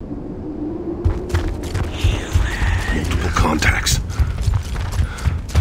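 Heavy boots thud quickly on stone.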